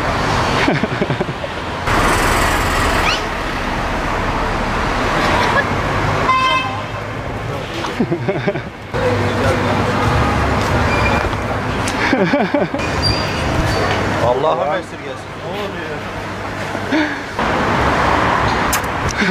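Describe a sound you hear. Voices of a passing street crowd murmur and chatter close by.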